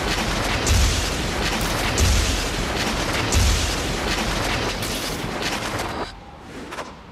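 Wind rushes loudly past during a fast swing through the air.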